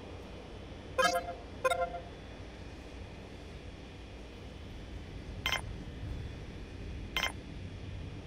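Short electronic clicks and chimes sound as menu buttons are pressed.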